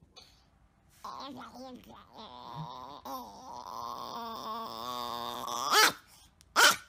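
A small dog howls and yowls in a high, wavering voice.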